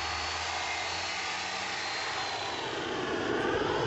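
A power tool whirs steadily against a pipe.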